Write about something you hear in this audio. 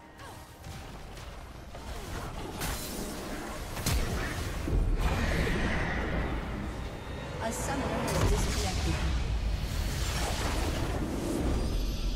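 Game battle effects whoosh, clash and crackle.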